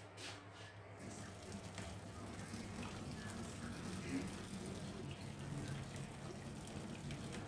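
Water pours from a pot into a metal sink.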